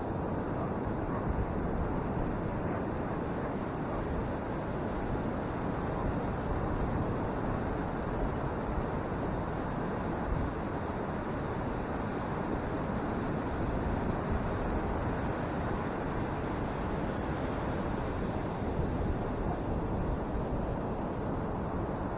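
Wind blows across the open beach.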